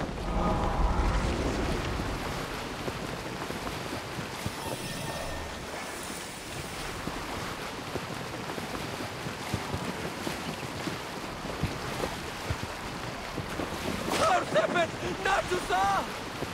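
Water splashes and rushes against a boat's hull as it sails steadily.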